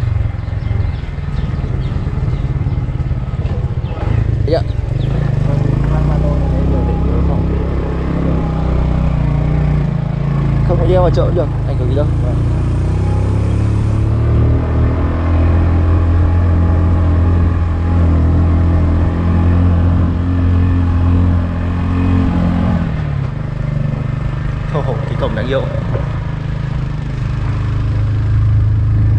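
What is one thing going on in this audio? A motorcycle engine hums steadily while riding along.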